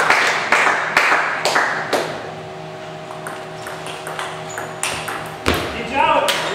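A table tennis ball clicks quickly back and forth on paddles and table in a large echoing hall.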